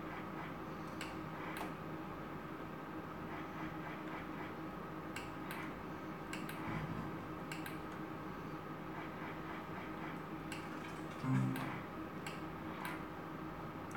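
A slot machine's reels spin with soft clicks.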